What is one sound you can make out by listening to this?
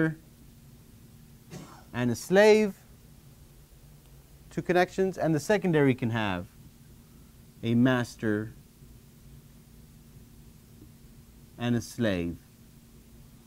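A man speaks calmly through a clip-on microphone.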